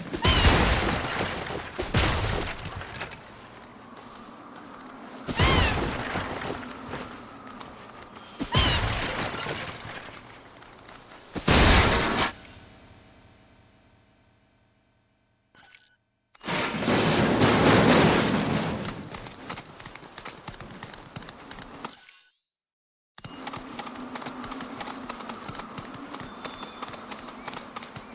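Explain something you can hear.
Large birds' feet patter quickly on the ground as they run.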